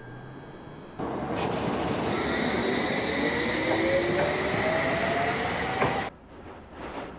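An electric train pulls away from the platform with a rising whine.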